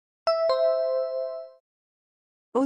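A bright two-note chime rings and fades.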